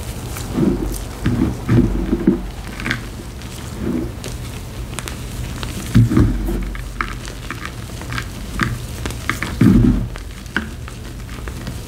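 Gloved hands crumble and squeeze a dry powdery mix, with soft crunching and crackling.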